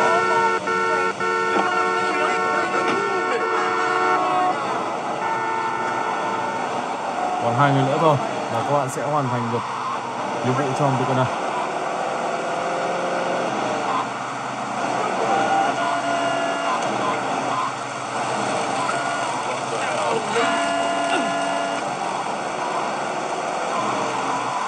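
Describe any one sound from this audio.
Music plays from a small tablet speaker.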